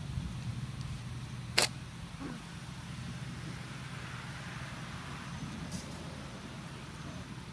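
Puppies growl and yip softly while play-fighting.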